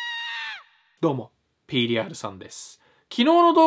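A young man speaks animatedly and close to the microphone.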